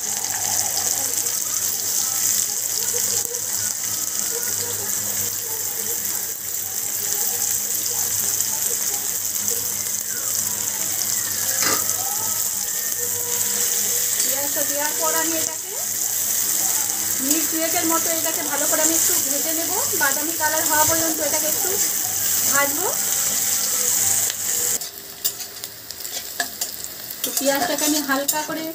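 Onions sizzle steadily in hot oil.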